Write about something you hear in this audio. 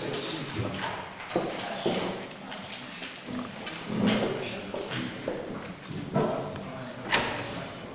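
An elderly man speaks quietly nearby.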